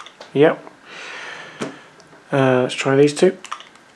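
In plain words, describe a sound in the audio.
A plastic game controller slides on and clicks into place.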